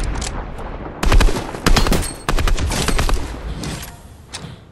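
Rapid gunfire blasts from a rifle.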